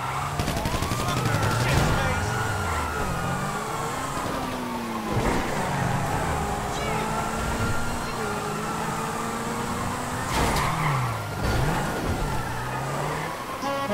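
A sports car engine revs and roars as the car speeds along.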